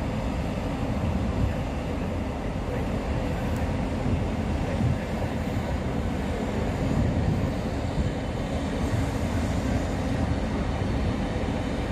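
A passenger train rolls past on the tracks with a low rumble.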